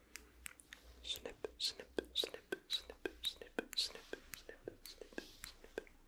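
Scissors snip rapidly close to a microphone.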